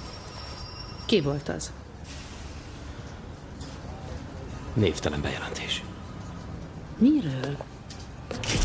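A woman speaks firmly and close by.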